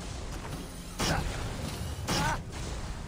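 Fiery bolts whoosh past.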